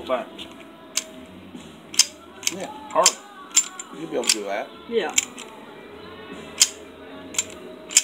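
A handgun clicks sharply as its slide and trigger are worked.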